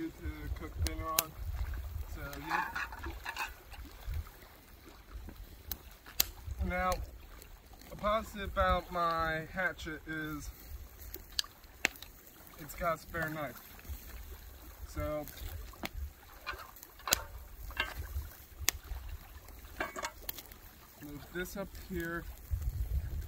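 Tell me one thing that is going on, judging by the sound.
A young man talks casually nearby, outdoors.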